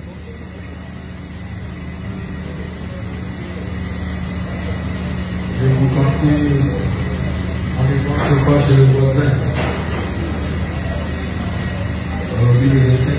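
An electric guitar plays a few notes.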